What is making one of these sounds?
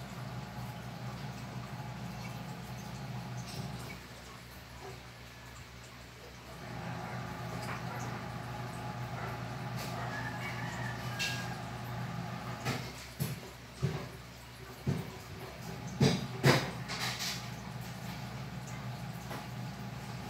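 Water gurgles through an aquarium sponge filter.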